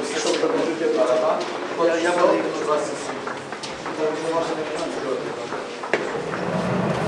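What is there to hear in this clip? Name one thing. Young men talk and call out in an echoing corridor.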